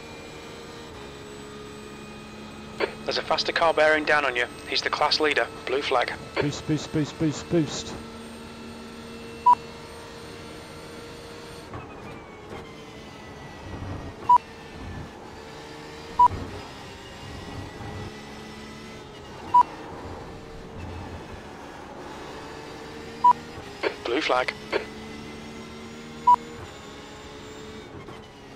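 A racing car engine drones steadily, shifting pitch as it speeds up and slows down.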